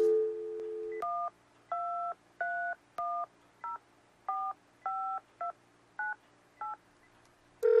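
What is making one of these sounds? Telephone keypad buttons beep one after another as a number is dialed.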